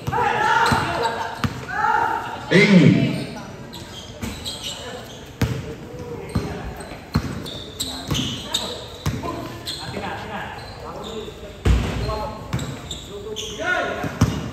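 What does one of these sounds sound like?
Young men shout and call out to each other across an echoing court.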